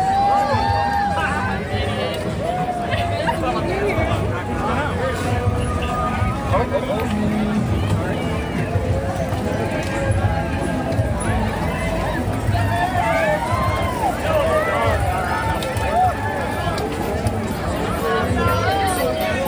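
A large crowd of men and women chatters and calls out nearby, outdoors.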